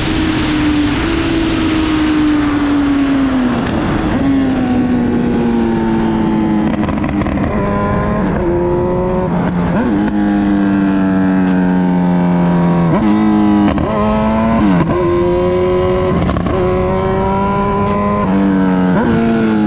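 A motorcycle engine revs up and down through the gears, roaring close by.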